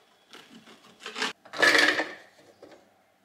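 A plastic lid clatters onto a food processor bowl.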